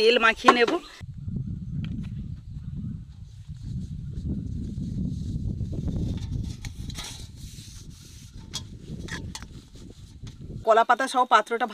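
Fingers rub and wipe a banana leaf in a metal plate.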